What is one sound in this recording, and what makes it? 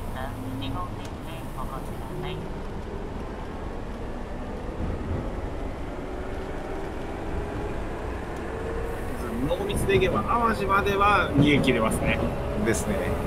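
An electric train motor whines, its pitch slowly rising.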